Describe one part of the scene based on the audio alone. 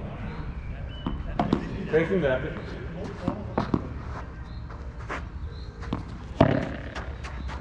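A ball bounces on the court with dull thuds.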